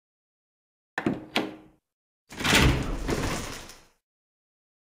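A heavy wooden door creaks open.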